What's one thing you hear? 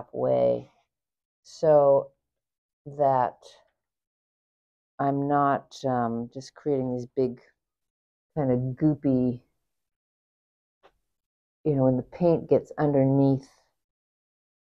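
A woman talks calmly, close to a clip-on microphone.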